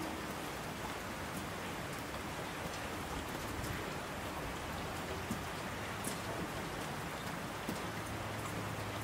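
Water rushes down torrents.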